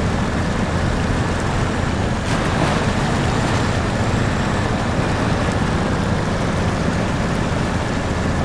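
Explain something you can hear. A truck engine roars steadily as it drives.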